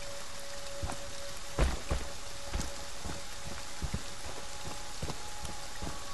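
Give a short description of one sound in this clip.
Heavy footsteps crunch on gravel.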